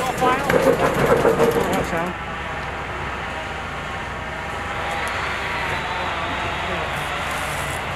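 An electric trolley rumbles steadily along the rails, slowly drawing nearer.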